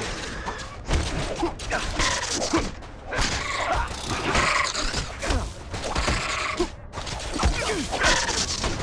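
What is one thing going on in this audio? A giant mechanical creature clanks and stomps in battle.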